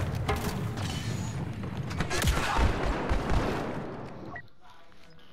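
Laser blasters fire amid a loud, rumbling battle.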